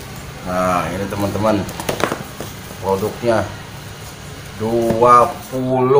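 Cardboard boxes tap against a hard floor.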